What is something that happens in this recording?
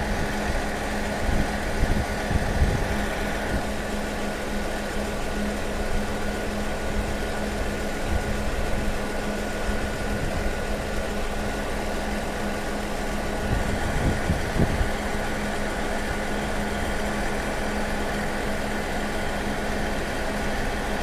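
A distant train rumbles as it slowly approaches.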